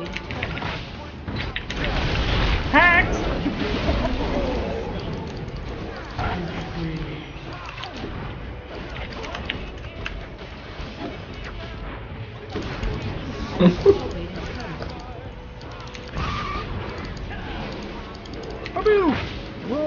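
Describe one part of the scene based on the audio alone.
Video game combat sounds play, with spell blasts and explosions.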